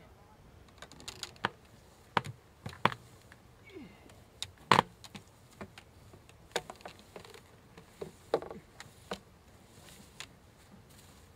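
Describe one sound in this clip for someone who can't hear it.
Metal parts clink and knock as a launch stand is handled.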